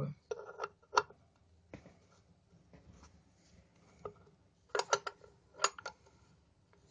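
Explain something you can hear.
A wrench clinks against a metal bolt.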